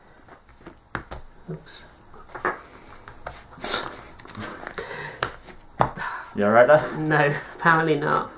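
Playing cards are shuffled and riffled by hand.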